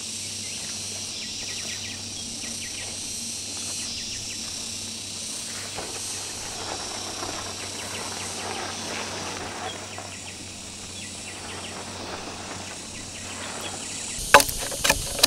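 A tarp rustles and flaps as it is pulled taut.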